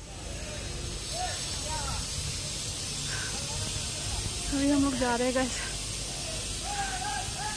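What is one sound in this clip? A young woman talks calmly, close to the microphone.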